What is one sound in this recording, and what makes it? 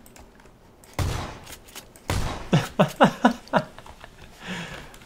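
Gunshots fire in quick bursts indoors.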